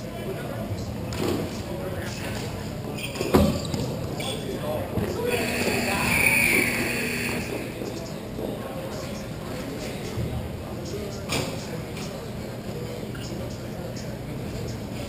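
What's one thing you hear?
Plastic wheels of roller skates roll and scrape on a hard floor.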